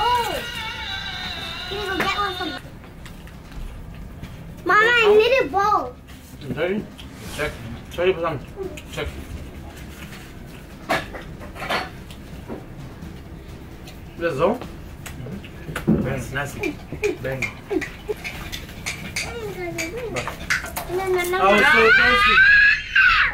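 Several men and children talk and laugh nearby.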